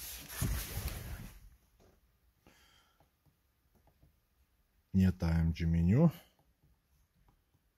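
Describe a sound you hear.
Buttons click on a steering wheel.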